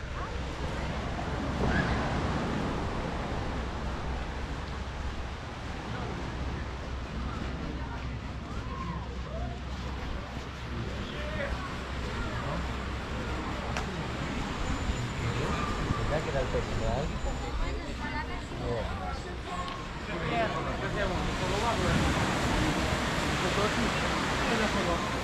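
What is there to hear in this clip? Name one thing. Men and women chat and call out at a distance outdoors.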